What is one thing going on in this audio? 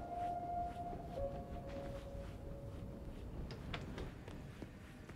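Footsteps walk steadily across a hard floor.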